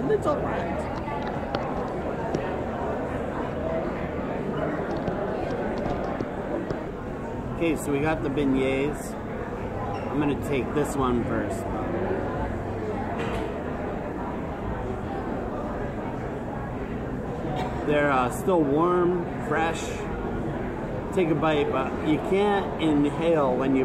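A crowd chatters steadily in the background.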